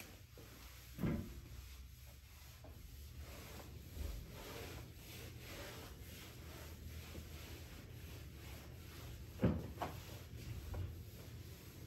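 Footsteps thud softly on a floor.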